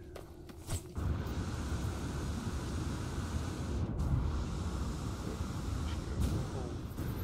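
A jetpack roars with a steady low rush.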